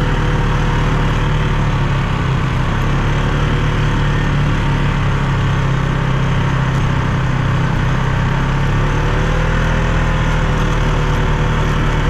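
A quad bike engine drones steadily up close.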